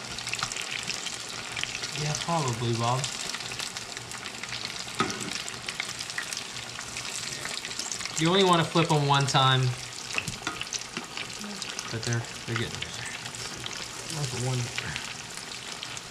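Oil sizzles and crackles steadily in a frying pot.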